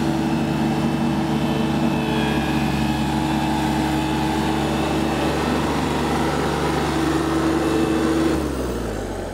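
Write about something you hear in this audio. A riding mower's engine runs with a steady, rumbling hum.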